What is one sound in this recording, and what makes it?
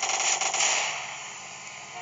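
A gunshot fires sharply.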